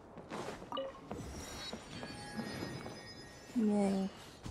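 A bright chime rings as an item is collected.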